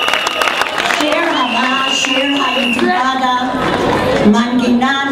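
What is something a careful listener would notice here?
A group of men and women sing together through loudspeakers.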